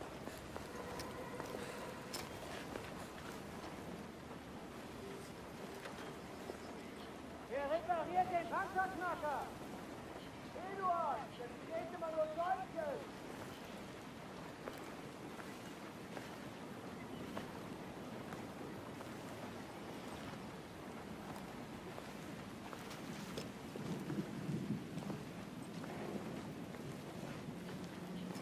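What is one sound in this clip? Footsteps shuffle over rubble and debris.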